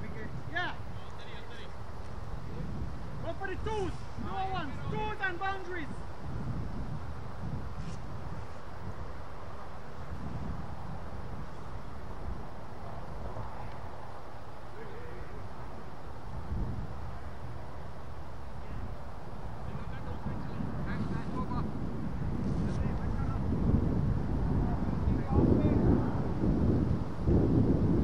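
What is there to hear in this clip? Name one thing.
Wind rumbles across the microphone outdoors, growing stronger toward the end.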